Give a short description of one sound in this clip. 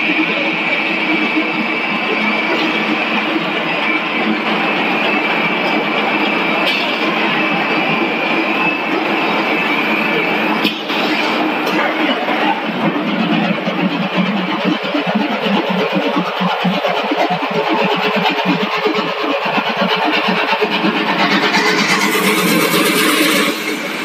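Factory machinery hums and rattles loudly and steadily.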